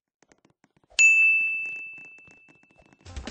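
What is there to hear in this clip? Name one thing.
A bright chime rings out and slowly fades.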